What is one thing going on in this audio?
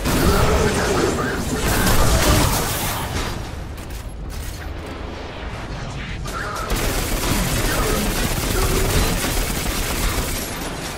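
Rapid gunfire blasts in quick bursts.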